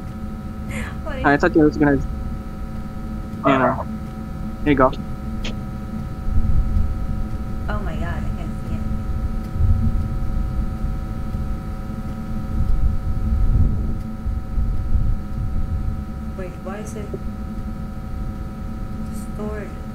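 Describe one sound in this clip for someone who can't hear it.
A young woman speaks in short bursts into a microphone, close by.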